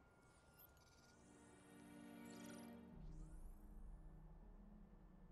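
Electronic scanning tones sweep and chime.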